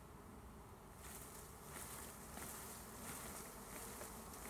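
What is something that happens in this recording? Leafy branches rustle as they are shaken.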